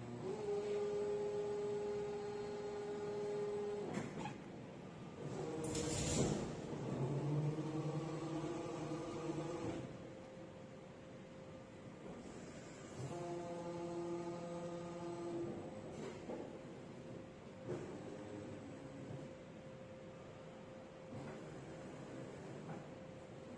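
Industrial machines hum and whine steadily in a large echoing hall.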